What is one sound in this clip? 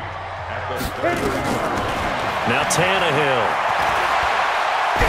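A stadium crowd roars loudly.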